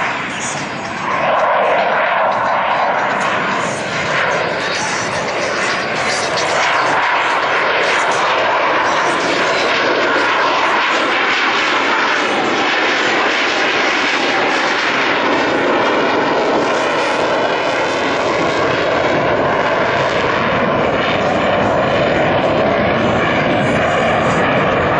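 A jet engine roars loudly overhead as a fighter jet climbs away.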